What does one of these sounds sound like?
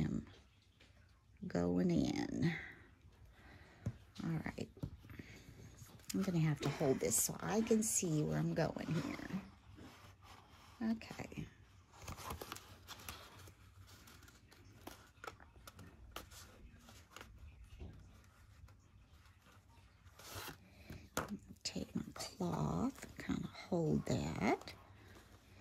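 Paper rustles and crinkles as it is folded and pressed.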